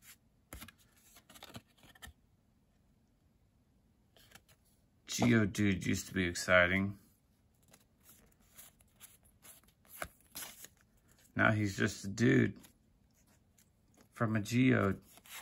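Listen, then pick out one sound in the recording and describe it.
Trading cards are shuffled and flicked in hands, with soft papery clicks.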